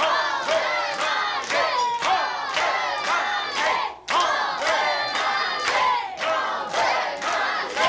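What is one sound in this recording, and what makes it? A crowd of people claps along in a steady rhythm.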